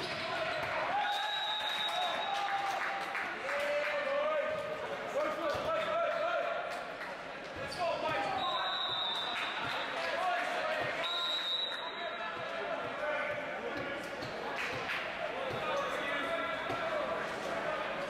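Shoes squeak sharply on a hard court floor, echoing in a large hall.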